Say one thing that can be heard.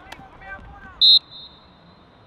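A referee's whistle blows a short, sharp blast.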